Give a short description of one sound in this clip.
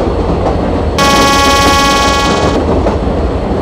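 A train horn sounds once, loud and brief.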